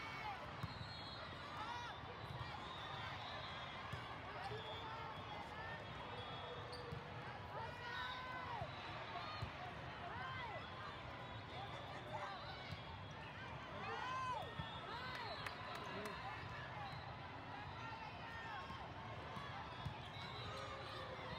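Sneakers squeak sharply on a hard court, many times over.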